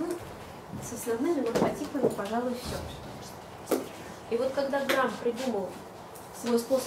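A woman speaks calmly, as if giving a lecture.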